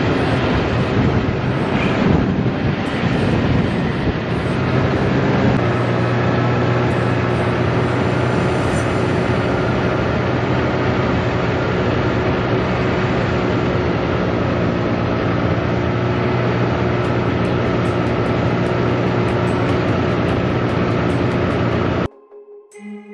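A snowmobile engine drones loudly and steadily up close.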